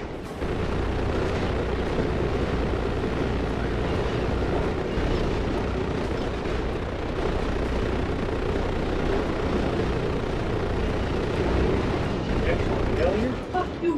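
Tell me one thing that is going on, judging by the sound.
Heavy machine guns fire in a rapid, roaring stream.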